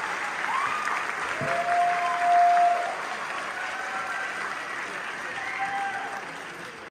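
A string orchestra tunes up, with scattered notes echoing in a large hall.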